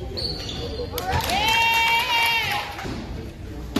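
A referee's whistle blows a long shrill blast.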